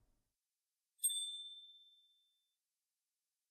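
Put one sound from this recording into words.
A small bell chimes once and rings out.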